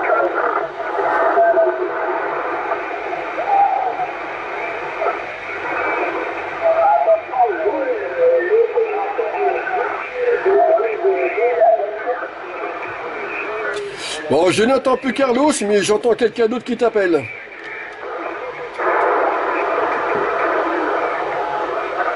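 Radio static hisses steadily.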